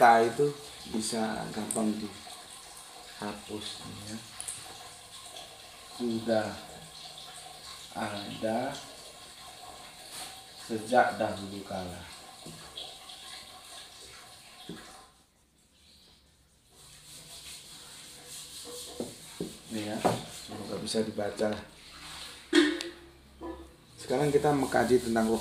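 A man speaks calmly to a nearby listener, with pauses.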